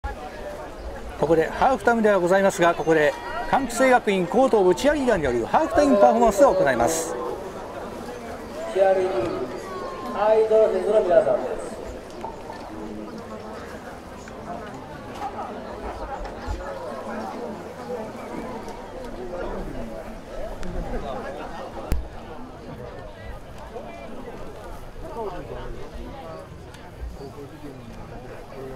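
A crowd murmurs in the distance.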